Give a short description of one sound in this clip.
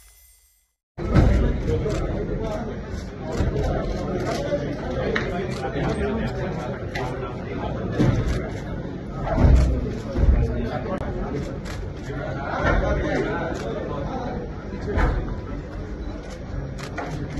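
A crowd murmurs quietly in a room.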